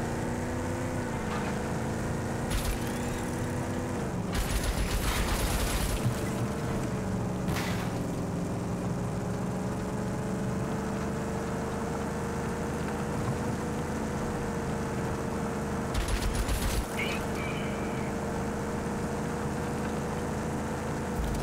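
Tyres rumble and crunch over a dirt road.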